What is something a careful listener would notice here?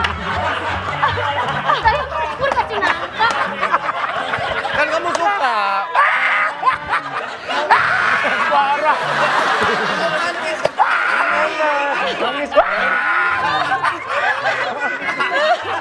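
A man laughs loudly and groans close by.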